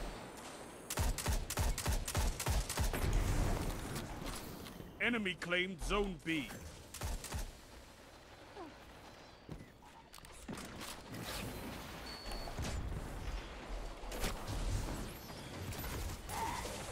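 Rifle shots ring out in sharp bursts.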